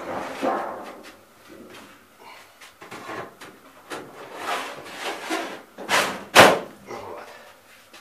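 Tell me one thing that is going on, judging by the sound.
A thin metal sheet rattles and scrapes against a metal frame.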